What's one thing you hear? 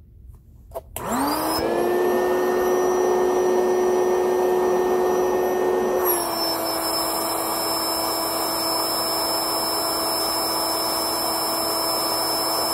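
An electric air pump hums and blows loudly and steadily.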